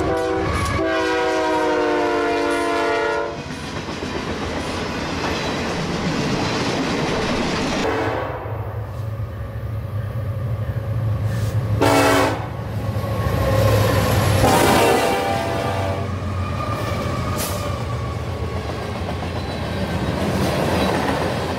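Diesel locomotives rumble past.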